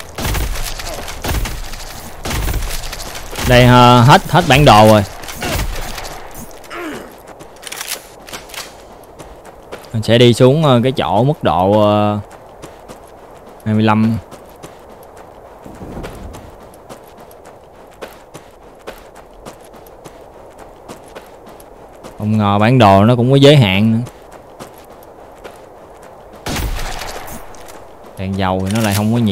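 Rapid gunshots and explosions in a video game crackle and boom.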